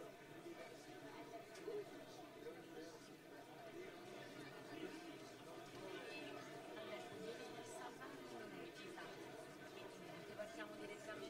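A woman speaks through a microphone over loudspeakers.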